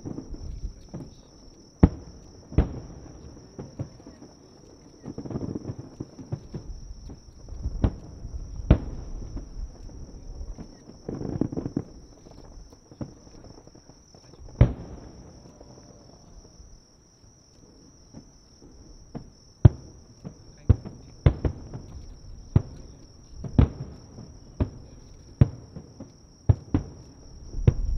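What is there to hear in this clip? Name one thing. Firework shells crackle and rumble after bursting.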